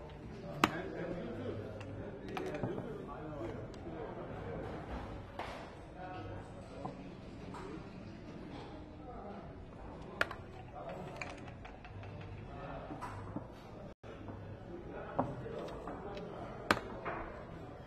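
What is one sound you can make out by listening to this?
Dice rattle in a cup and clatter onto a wooden board.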